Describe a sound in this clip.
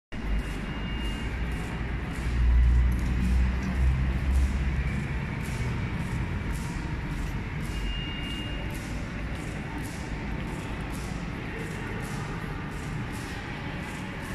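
Footsteps echo across a large, echoing hall.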